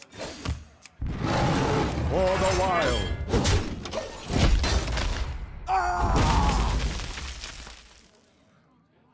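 Game sound effects chime and whoosh as cards are played.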